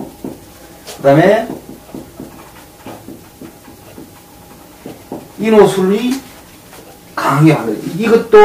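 A middle-aged man speaks calmly and close by, in short bursts.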